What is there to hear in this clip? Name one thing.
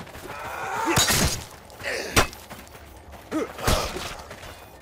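Metal weapons clash and strike sharply.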